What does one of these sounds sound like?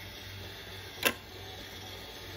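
A marble drops into a plastic cup with a light click.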